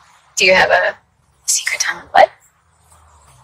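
A young woman asks a question with a light, playful tone.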